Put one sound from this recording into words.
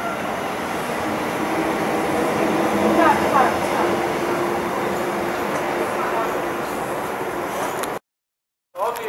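A train rumbles past along the rails.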